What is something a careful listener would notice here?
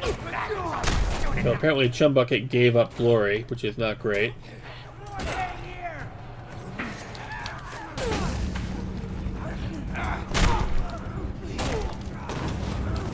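Heavy punches thud in a video game fight.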